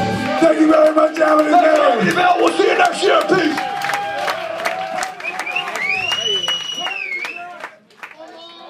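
A rock band plays loudly in a live hall.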